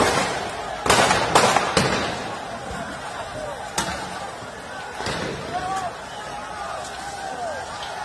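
A crowd shouts and yells in the distance.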